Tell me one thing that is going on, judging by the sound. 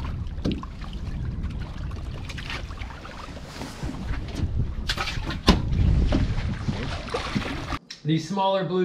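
Wind rumbles across the water outdoors.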